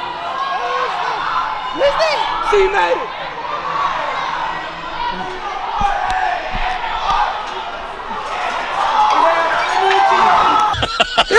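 A crowd of children and adults chatters and shouts in a large echoing hall.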